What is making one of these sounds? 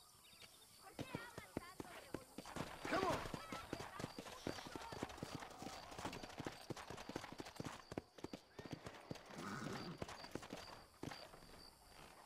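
A horse's hooves clop quickly on hard dirt.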